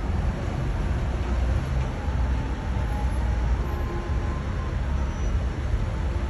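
Traffic rumbles steadily on a street below.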